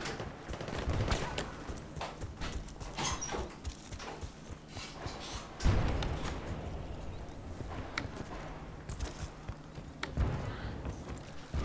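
Footsteps thud quickly on dirt and wooden floors.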